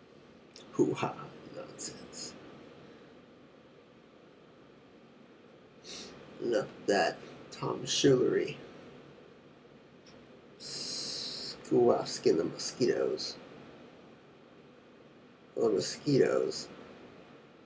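A young man speaks casually and close by, in short bursts with pauses.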